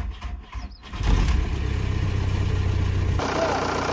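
A car engine starts and idles steadily.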